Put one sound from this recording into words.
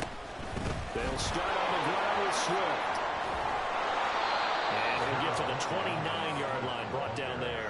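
A large stadium crowd roars and cheers loudly, then fades.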